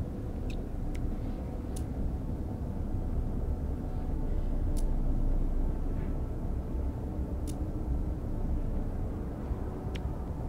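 Short soft clicks of a game menu sound now and then.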